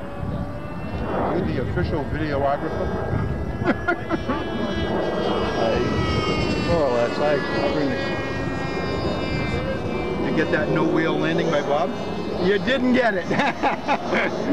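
Adult men talk casually nearby outdoors.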